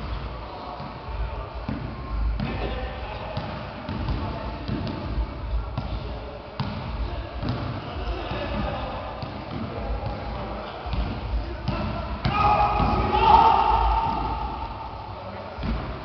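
A ball bounces on a hard floor in a large echoing hall.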